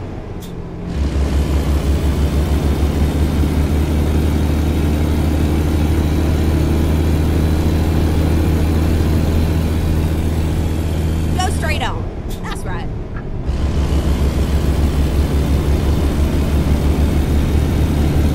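A truck's diesel engine rumbles steadily with a deep throb.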